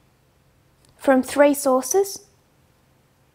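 A woman speaks briefly and calmly, close to a microphone.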